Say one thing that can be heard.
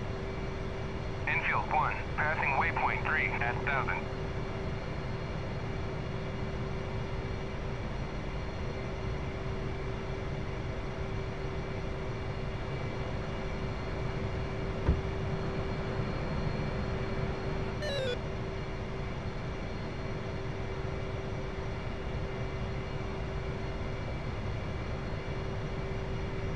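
A jet engine idles with a steady low rumble and hum.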